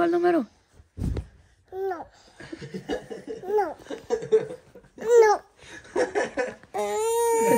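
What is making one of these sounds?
A young child whines and cries out in short bursts close by.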